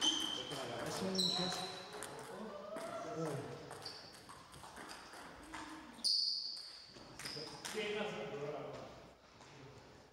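Men talk casually in an echoing hall.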